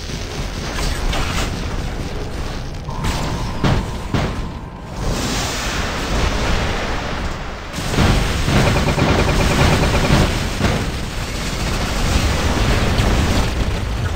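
Heavy metal footsteps stomp.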